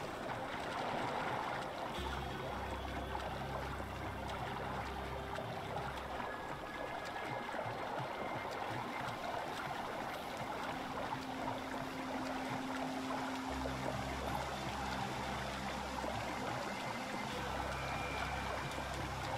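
Water splashes steadily as someone swims.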